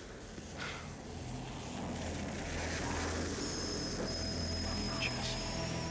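A blowtorch flame hisses steadily.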